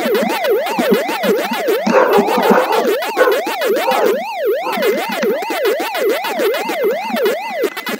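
A retro arcade game siren wails up and down in a steady, repeating rise and fall.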